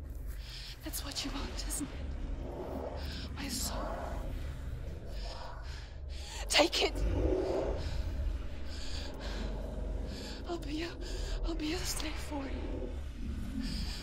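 A young woman speaks close by in a low, strained voice.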